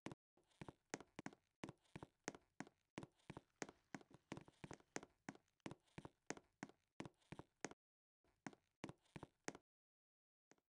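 Footsteps tap quickly across a hard floor.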